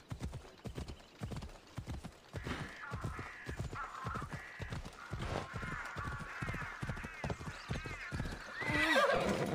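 Hooves pound steadily at a gallop.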